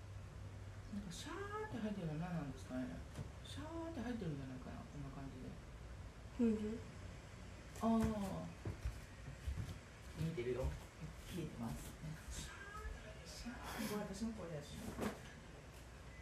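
A young woman talks casually and close by.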